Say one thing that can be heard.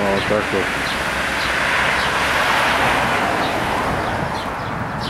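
A car passes by on a nearby road, swelling and then fading.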